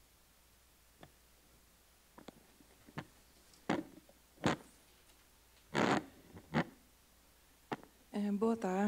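A microphone thumps and rustles as it is handled.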